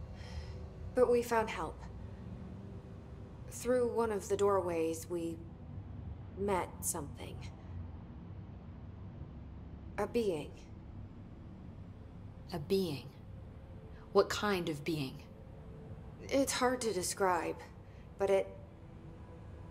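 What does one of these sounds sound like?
A woman speaks calmly and quietly, close by.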